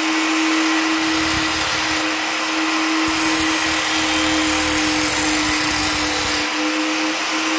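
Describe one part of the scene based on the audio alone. An angle grinder's disc grinds harshly against metal.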